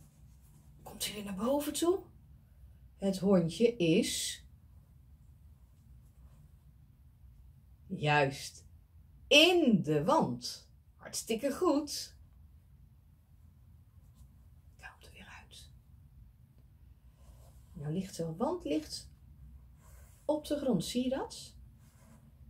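A middle-aged woman speaks calmly and warmly, close to a microphone, in short phrases with pauses.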